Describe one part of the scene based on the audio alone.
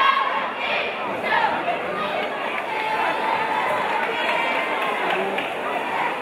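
A woman talks with animation to a group, close by.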